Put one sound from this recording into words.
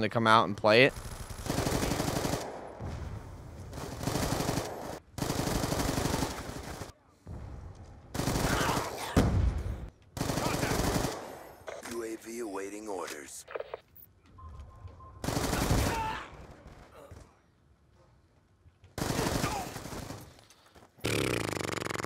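Rapid bursts of gunfire crack repeatedly.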